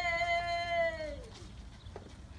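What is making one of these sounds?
A woman calls out in a long, high, sustained voice that falls away.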